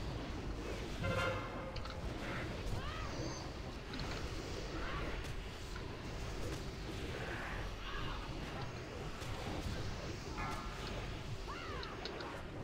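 Magic spell effects whoosh, chime and crackle in a busy battle.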